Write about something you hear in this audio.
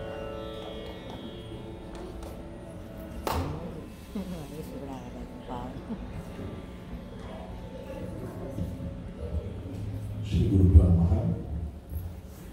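A violin plays a melody.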